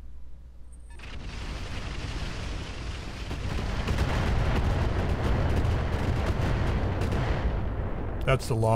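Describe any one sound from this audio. A deep explosion roars and rumbles before fading.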